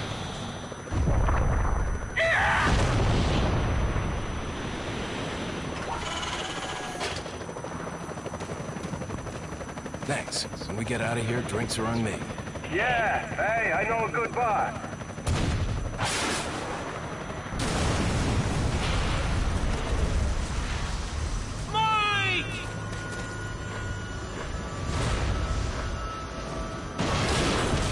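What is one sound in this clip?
A helicopter's rotor thuds overhead.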